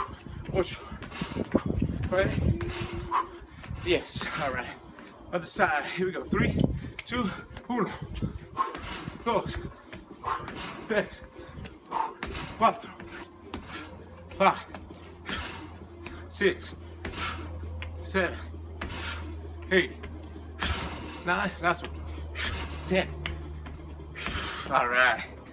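Sneakers thud and scuff on a wooden deck as a man jumps and shuffles.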